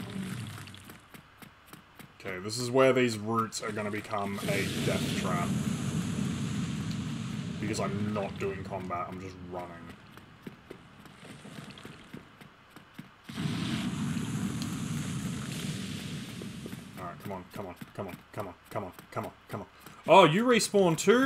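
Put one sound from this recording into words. Bare feet patter quickly on stone.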